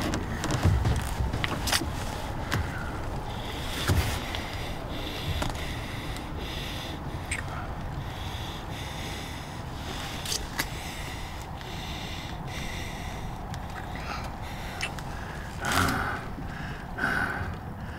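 Soft kissing sounds come from close by.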